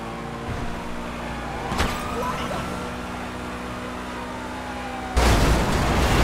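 A sports car engine hums steadily at speed.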